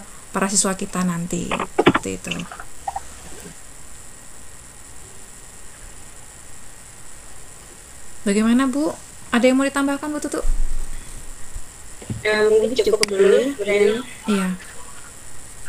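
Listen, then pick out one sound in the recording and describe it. A young woman talks with animation through an online call.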